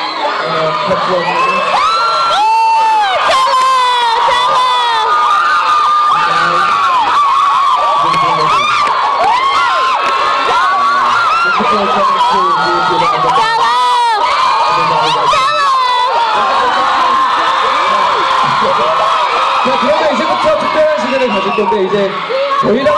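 A crowd of young women screams and cheers loudly in a large hall.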